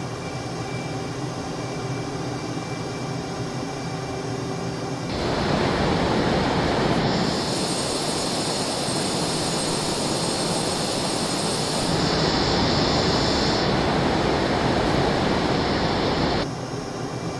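A jet engine hums steadily from inside a cockpit.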